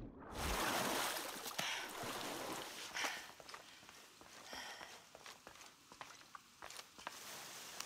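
Footsteps tread softly on a hard floor.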